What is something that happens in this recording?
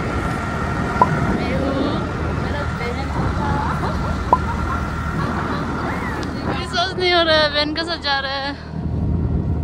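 A young woman laughs and talks excitedly close by.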